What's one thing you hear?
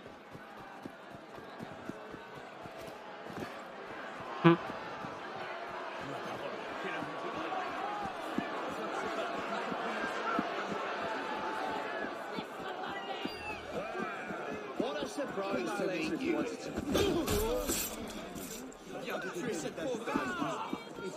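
A crowd murmurs and chatters loudly.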